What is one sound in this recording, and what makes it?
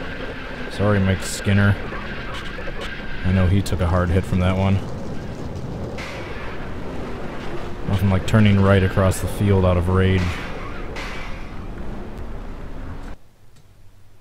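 Racing car engines roar and whine loudly.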